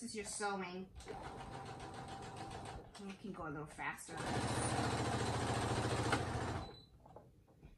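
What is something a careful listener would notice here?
A sewing machine runs with a steady whirring hum.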